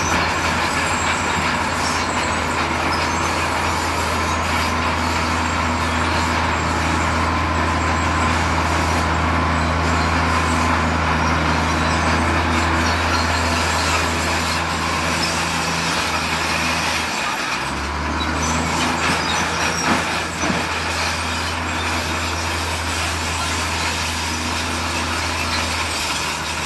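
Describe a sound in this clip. Rocks tumble and clatter out of a tipping truck.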